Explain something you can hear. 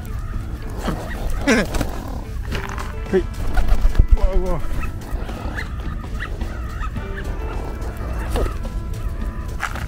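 Pigeons flap their wings.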